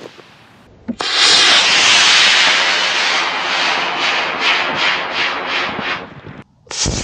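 A rocket motor roars loudly with a rushing hiss, then fades.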